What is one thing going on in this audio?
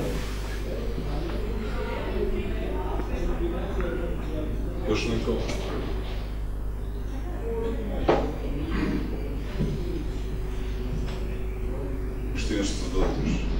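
A man speaks calmly into a microphone in a room.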